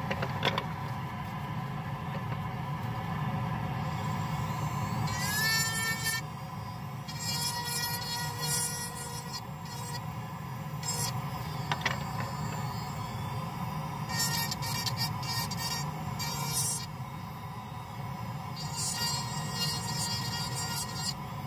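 A dust suction nozzle hums and rushes steadily.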